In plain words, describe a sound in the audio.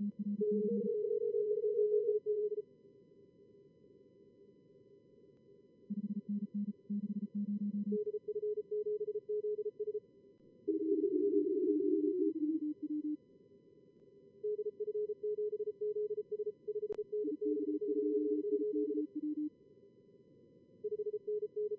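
Radio static hisses softly underneath.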